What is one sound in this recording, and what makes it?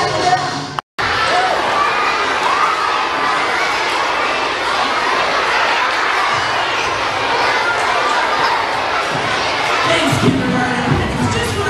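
A crowd of young people chatters and murmurs in a large echoing hall.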